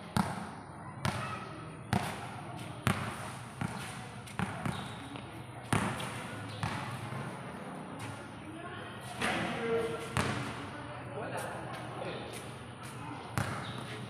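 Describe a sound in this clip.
A basketball bounces on a hard court, echoing under a large roof.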